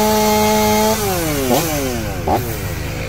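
A chainsaw engine winds down and stops.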